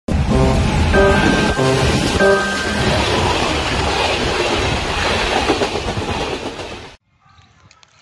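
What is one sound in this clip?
A train rumbles and clatters loudly past at close range.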